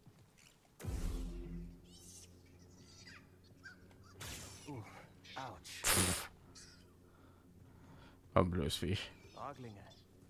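A lightsaber whooshes through the air in quick swings.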